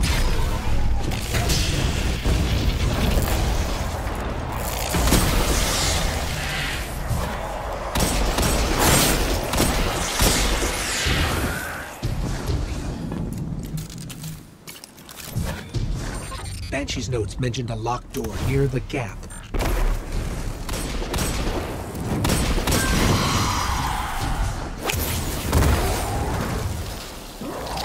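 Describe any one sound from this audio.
Gunshots bang loudly in quick bursts.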